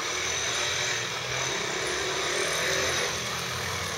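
A motor scooter engine hums in the distance.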